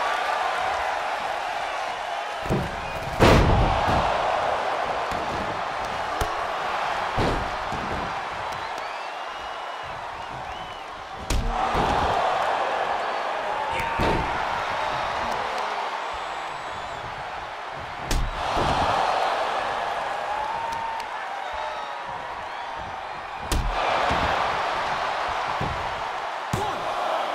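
A large arena crowd cheers and roars throughout.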